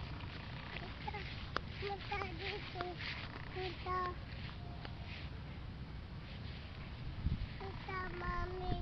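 A toddler babbles in a high voice close by.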